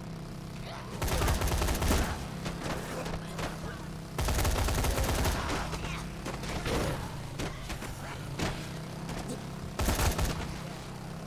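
Bodies thud against a motorcycle in repeated heavy impacts.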